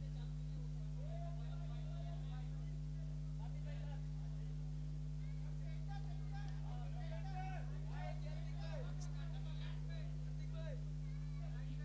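A crowd of men call out and chatter nearby.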